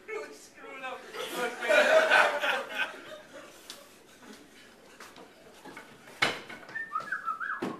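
Young men shout and talk with animation in a small room.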